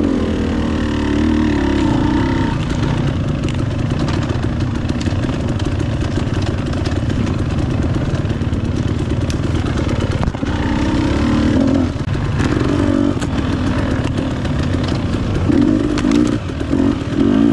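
Tyres crunch and bump over a rough dirt trail.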